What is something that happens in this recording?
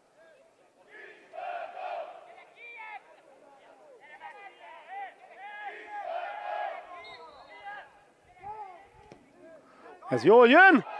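A crowd of spectators chatters and calls out in the distance.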